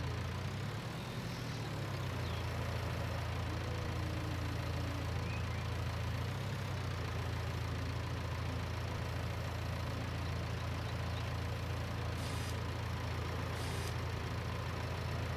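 A diesel engine rumbles steadily.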